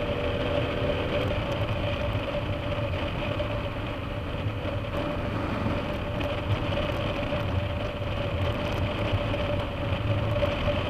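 Wind rushes past a moving motorcycle.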